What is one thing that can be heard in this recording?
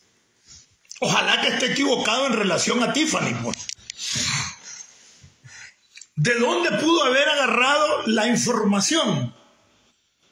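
A middle-aged man sings out in long wavering tones close to a phone microphone.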